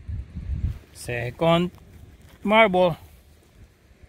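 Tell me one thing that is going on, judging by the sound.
A gloved hand scrapes through loose soil.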